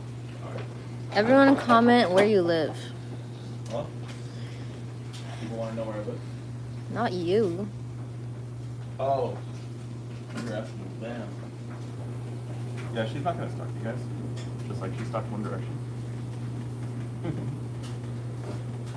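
A man speaks close by, casually.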